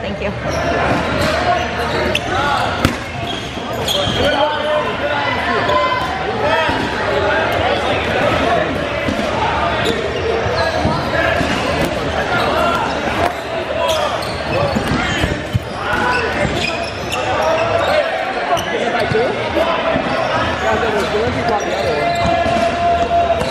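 A crowd of young men and women shout and chatter in an echoing gym.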